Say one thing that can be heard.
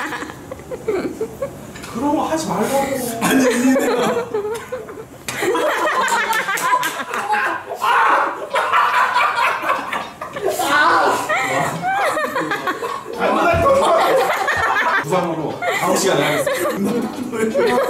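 A man laughs and talks with animation nearby.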